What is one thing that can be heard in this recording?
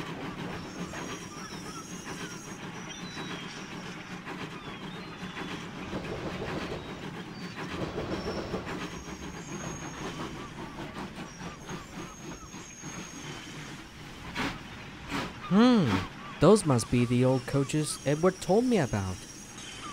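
A steam locomotive chugs slowly along the tracks.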